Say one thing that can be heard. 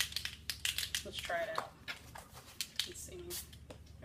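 A sheet of paper rustles as it is lifted.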